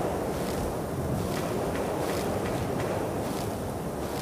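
Leaves rustle as plants are picked by hand.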